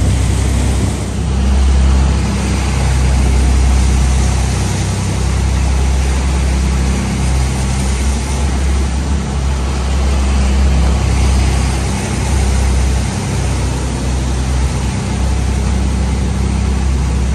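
Waves crash and rush past a boat's hull.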